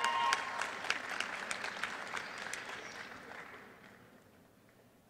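An audience claps and applause fades away in a large hall.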